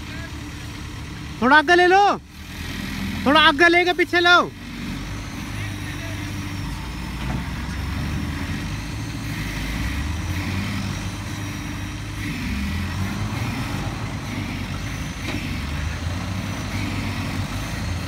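A crane's diesel engine rumbles steadily outdoors.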